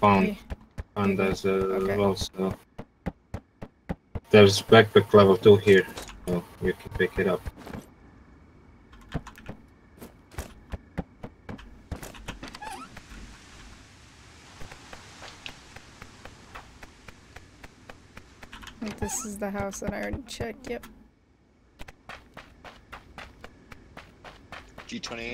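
Footsteps thud quickly on wooden floors and ground.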